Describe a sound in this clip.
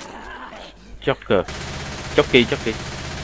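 A submachine gun fires quick bursts of loud shots.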